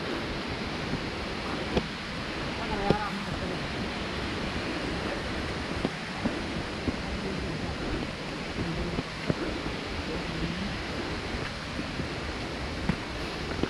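Footsteps crunch on loose dirt and rubble.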